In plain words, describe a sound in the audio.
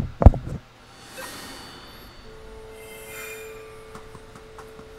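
A bright magical shimmer rings out.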